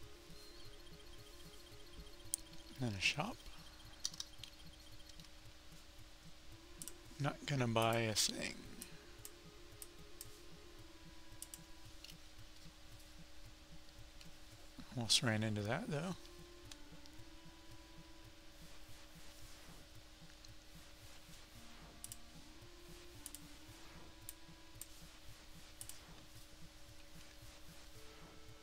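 Simple electronic game music plays softly throughout.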